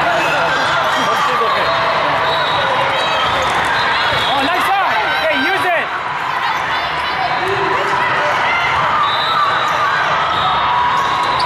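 A crowd of people chatters and calls out in a large echoing hall.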